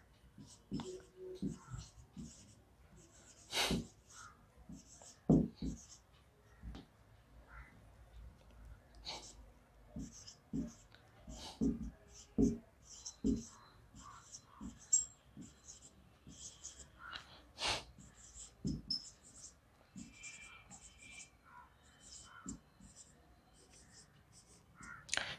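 A marker squeaks and taps on a whiteboard in short strokes.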